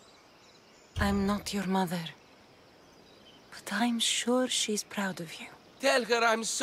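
A young woman speaks softly and gently.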